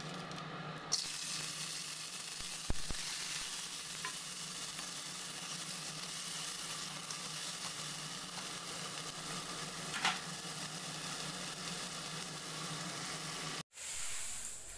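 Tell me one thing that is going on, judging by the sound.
Food sizzles and hisses in a hot pan.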